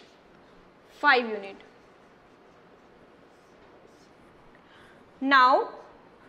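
A woman speaks calmly in short phrases.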